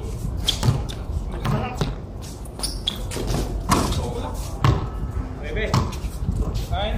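A basketball bounces with thuds on a concrete court.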